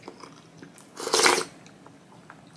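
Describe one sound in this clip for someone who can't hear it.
A young woman slurps soup from a spoon close to a microphone.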